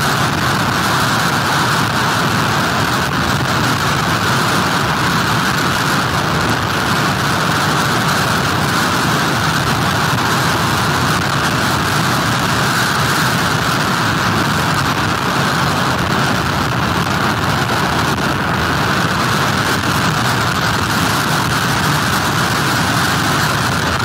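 Heavy surf crashes and roars steadily onto the shore.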